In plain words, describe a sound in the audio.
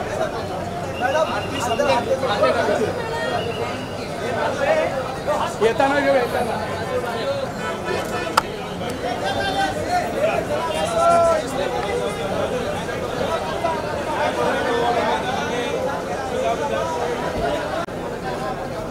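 Men shout close by in a jostling crowd.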